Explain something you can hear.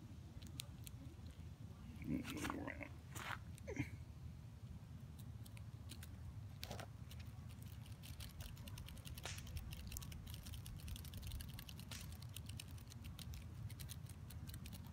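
Dry leaves rustle and crackle as insects struggle on the ground.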